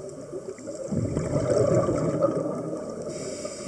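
Exhaled air from a scuba regulator bubbles and rumbles underwater.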